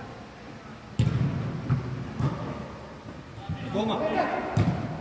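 A football is kicked with a sharp thud that echoes around a large hall.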